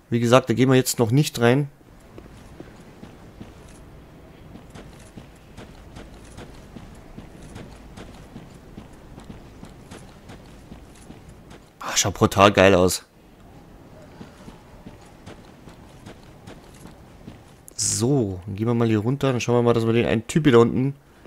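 Armoured footsteps run quickly over stone and grass.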